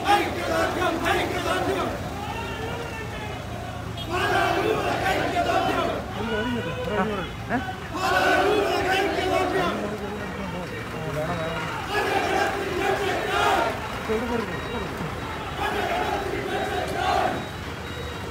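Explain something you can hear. A crowd of men chants slogans loudly in rhythmic bursts outdoors.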